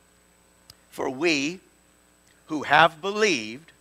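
An elderly man speaks with emphasis into a microphone.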